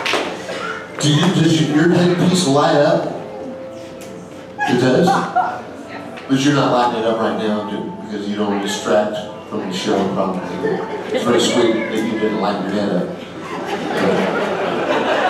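A man talks with animation through a microphone and loudspeakers.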